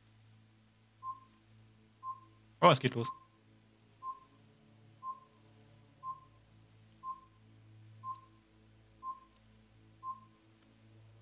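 A game countdown timer beeps once a second.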